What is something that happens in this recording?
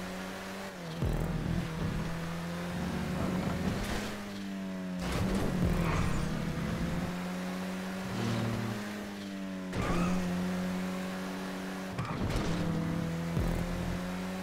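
Tyres thump and scrape on the road.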